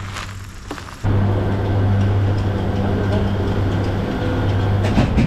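Cable car machinery hums loudly and steadily.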